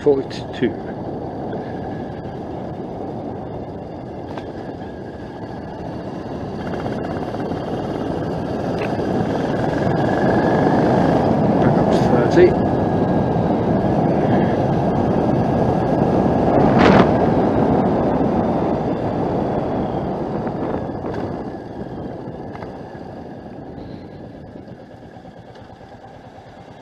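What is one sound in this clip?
Wind rushes past loudly as the motorcycle rides.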